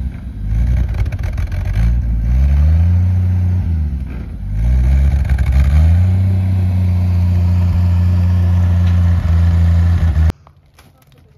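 A tractor engine rumbles and revs nearby.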